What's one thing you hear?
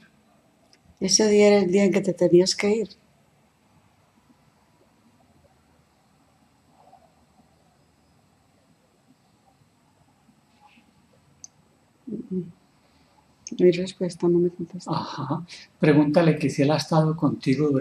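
A middle-aged woman speaks slowly and quietly, close by.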